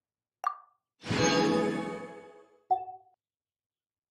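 A bright sparkling jingle plays as rewards are collected.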